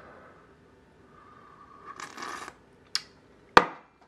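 A man slurps a thick drink from a spoon.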